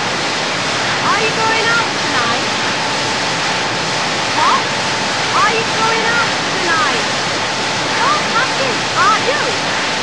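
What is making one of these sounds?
A young woman shouts over machinery noise.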